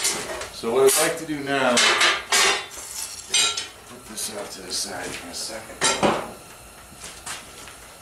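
Metal rods clank against a steel table.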